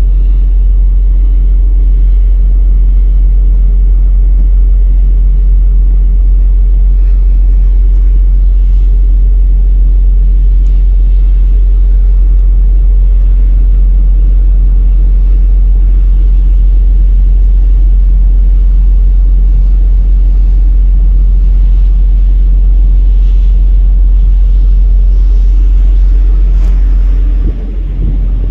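A ship's engine rumbles low and steady nearby.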